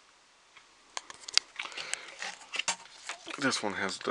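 A plastic fan clicks and knocks as it is handled.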